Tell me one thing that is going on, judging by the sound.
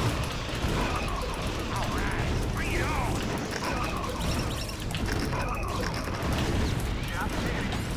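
Gunfire and explosions crackle and boom in rapid bursts.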